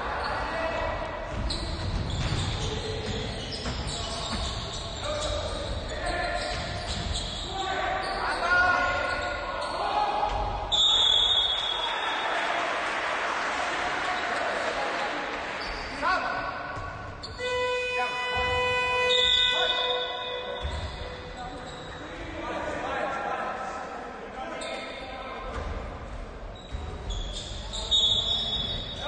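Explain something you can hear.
Players shout to each other in a large echoing gym.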